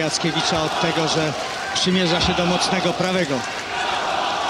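A large crowd chants rhythmically in an echoing hall.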